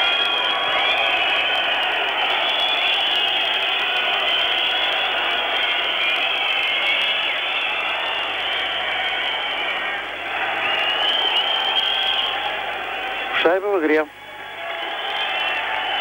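A large crowd cheers and roars in an ice hockey arena.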